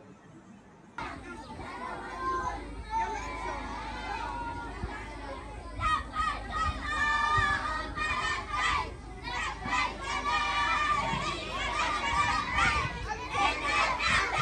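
A crowd of children chatter and call out nearby outdoors.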